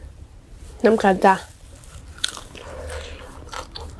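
A young woman chews food with wet, smacking mouth sounds close to the microphone.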